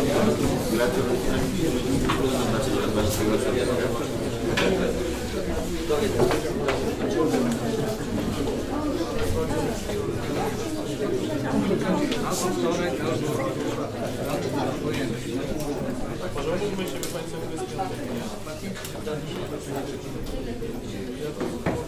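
Adult men and women chatter in a room, many voices overlapping.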